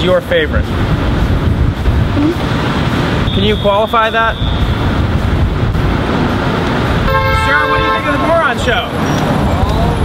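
Steady street traffic rumbles nearby.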